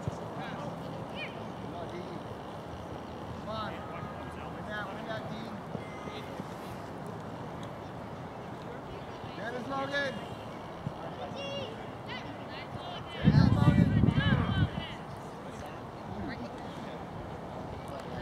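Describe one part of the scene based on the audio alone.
Children and adults shout and call out outdoors across an open field.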